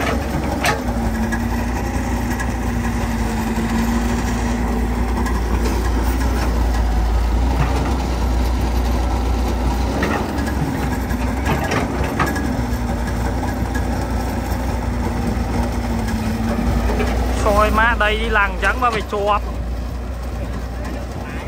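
An excavator's hydraulics whine as the arm moves.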